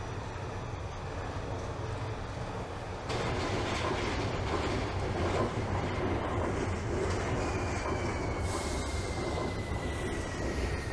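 A subway train rumbles along rails.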